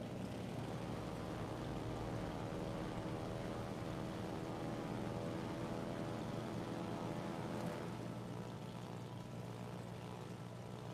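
Propeller plane engines drone steadily in a large formation.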